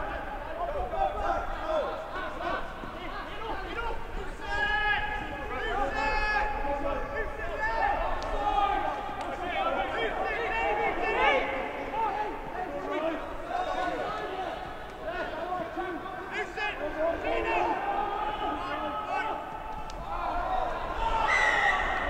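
Men shout to each other outdoors on an open field.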